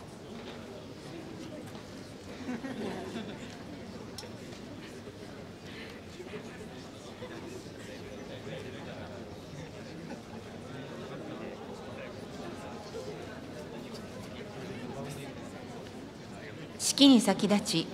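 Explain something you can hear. A large crowd murmurs softly in a big echoing hall.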